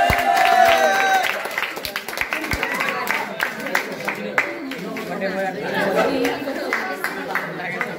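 Teenage boys talk and laugh close by, with animation.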